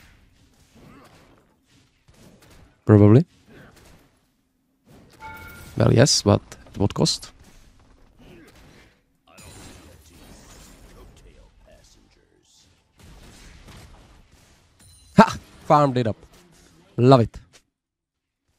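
A young man talks with animation into a close microphone, now and then exclaiming loudly.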